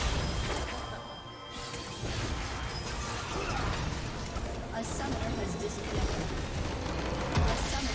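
Magic spells crackle and blast in a fight.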